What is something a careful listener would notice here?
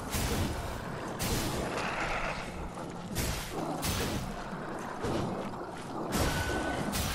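Blades whoosh and strike in quick, noisy bursts.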